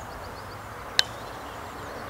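A putter taps a golf ball with a sharp click.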